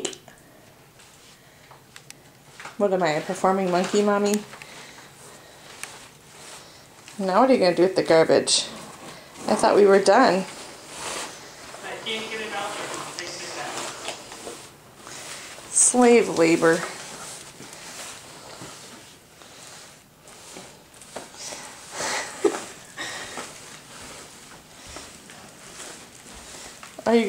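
A plastic bag rustles and crinkles as it is dragged.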